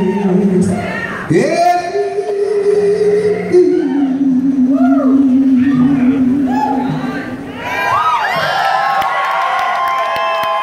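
A drum kit keeps a beat.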